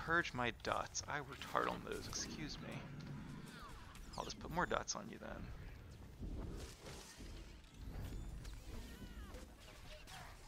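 Laser blasters fire in quick bursts during a fight.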